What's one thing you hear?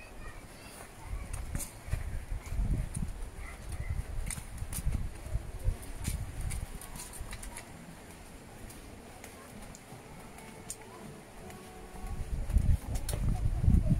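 Footsteps crunch softly along a dirt path.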